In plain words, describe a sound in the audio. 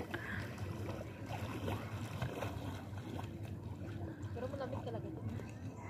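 Water sloshes around a person wading.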